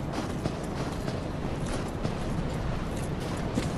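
Footsteps crunch on icy ground.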